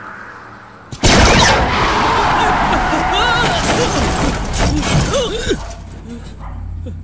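A car engine roars as the car speeds through a street.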